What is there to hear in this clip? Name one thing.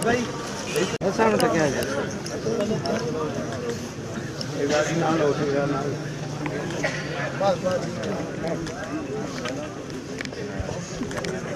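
A crowd of men talk and call out all around, close by.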